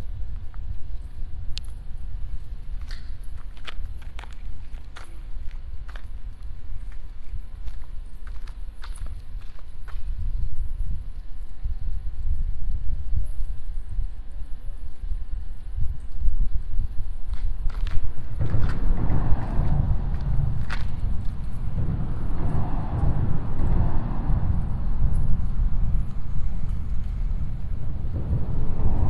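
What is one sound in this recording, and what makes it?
Wind blows across the microphone outdoors, rumbling steadily and gusting louder later on.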